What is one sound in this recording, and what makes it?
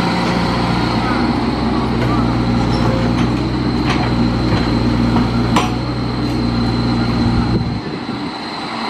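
An excavator engine rumbles steadily.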